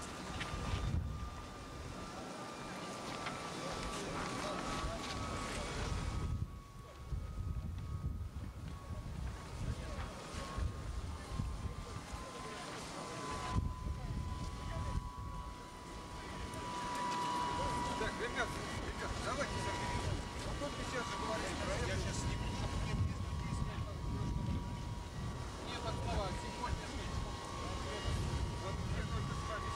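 A jet airliner's engines whine steadily as it taxis past.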